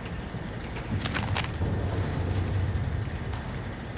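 Paper rustles as a sheet is picked up.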